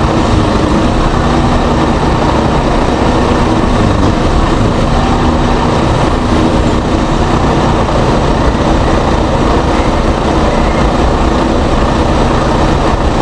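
A diesel heavy-haulage truck idles.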